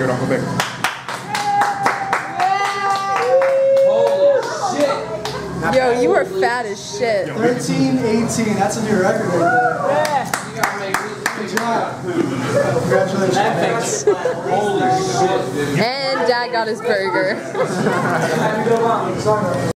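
Several people talk and laugh nearby.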